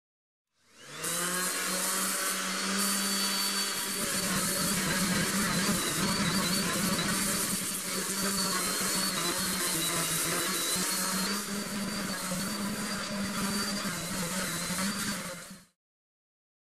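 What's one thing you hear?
A power sander whirs steadily against a hull.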